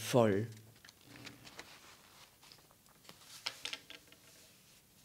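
Paper pages rustle as they are turned.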